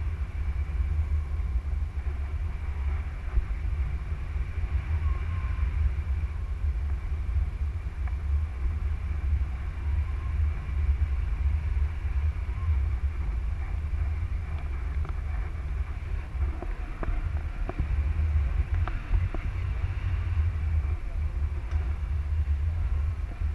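Wind buffets a microphone in flight under a paraglider.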